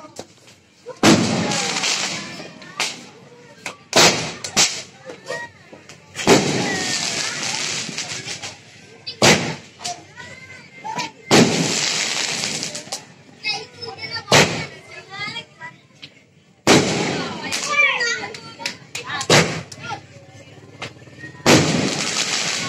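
Fireworks bang loudly, again and again.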